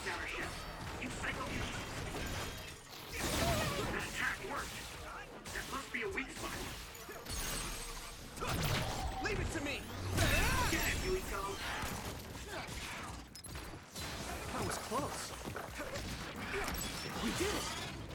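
Explosions and shattering crashes burst from a video game battle.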